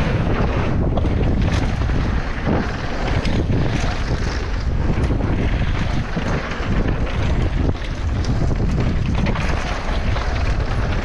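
Wind rushes loudly past as a bicycle speeds downhill.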